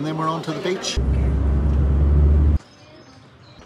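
A car engine rumbles from inside a car.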